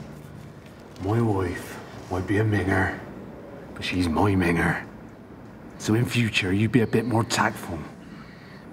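A man speaks in a low, menacing voice up close.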